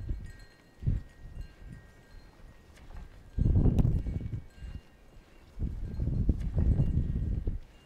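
Sheep tear and chew at grass close by.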